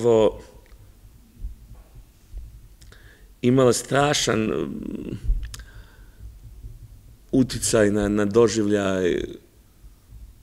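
A middle-aged man speaks calmly and clearly into a microphone, with pauses between phrases.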